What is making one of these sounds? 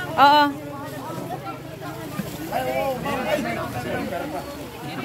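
Women and children chatter nearby outdoors.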